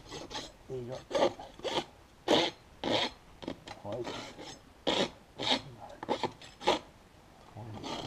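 A rasp scrapes across a horse's hoof in quick strokes.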